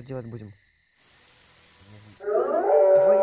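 Static hisses loudly in a short burst.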